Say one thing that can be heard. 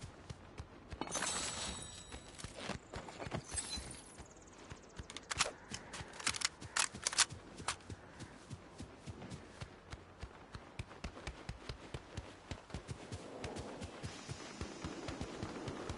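Quick footsteps patter steadily on hard ground.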